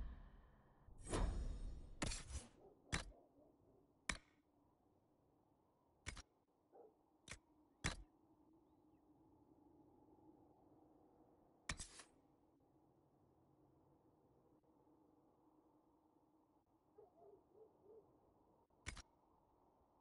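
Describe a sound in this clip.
Short sharp menu clicks and swishes sound as selections change.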